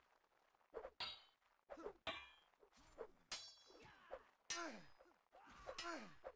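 Weapons clash and clatter in close fighting.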